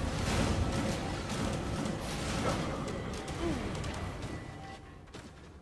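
Magic blasts burst and crackle in a fierce fight.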